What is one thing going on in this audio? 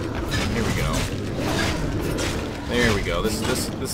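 A large beast growls and snarls close by.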